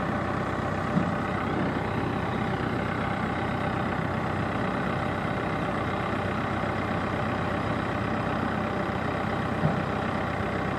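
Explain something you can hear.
Rocks knock and clatter against a digger's bucket.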